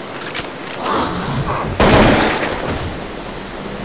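A rifle fires a burst of gunshots.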